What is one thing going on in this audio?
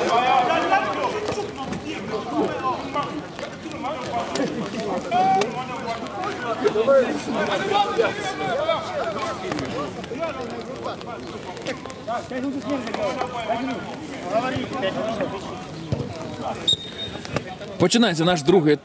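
Men talk and call out to each other outdoors at a distance.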